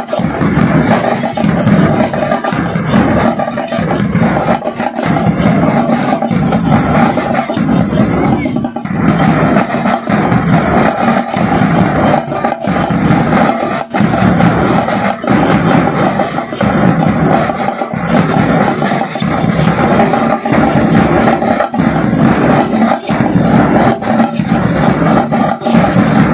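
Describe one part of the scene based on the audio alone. Several drums are beaten hard and fast with sticks in a loud, steady rhythm.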